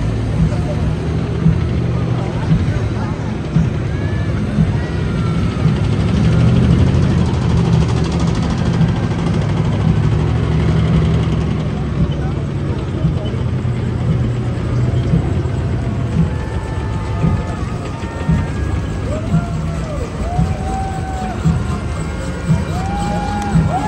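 Tank tracks clatter and squeak on the road.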